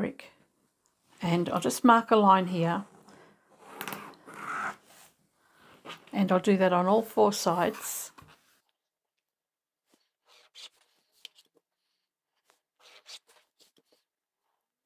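Fabric rustles and slides as hands smooth it flat.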